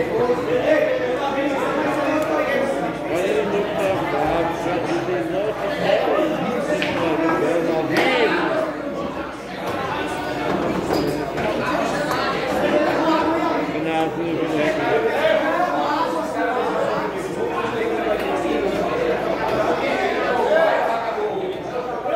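Several men talk and chatter nearby in a room with some echo.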